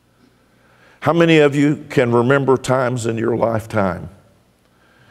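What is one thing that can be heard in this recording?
A middle-aged man speaks emphatically through a microphone in a large echoing hall.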